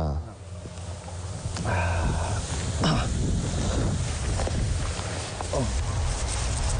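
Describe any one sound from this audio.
A man talks on a phone outdoors.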